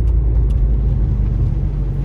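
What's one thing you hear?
A windshield wiper sweeps across the glass.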